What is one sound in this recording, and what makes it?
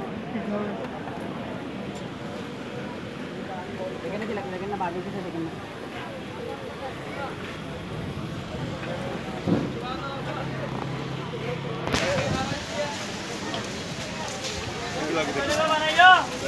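A crowd of people chatter nearby in a busy, noisy space.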